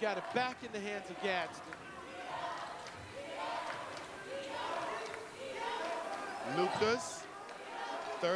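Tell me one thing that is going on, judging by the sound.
A crowd murmurs and calls out in a large echoing gym.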